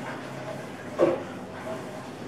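A ceramic mug is set down on a table with a soft knock.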